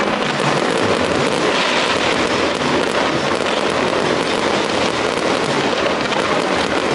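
Fireworks crackle and bang rapidly and without a break.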